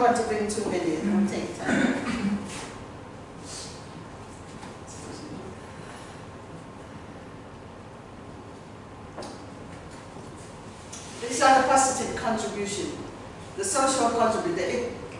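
A woman speaks calmly in a room.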